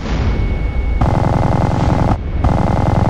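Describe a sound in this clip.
A machine gun fires in a rapid, rattling burst.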